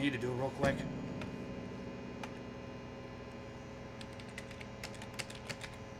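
Keys click on a keyboard.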